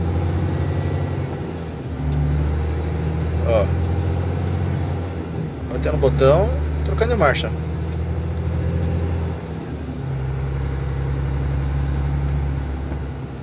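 A large diesel engine rumbles steadily from inside the cab, dipping briefly as gears change.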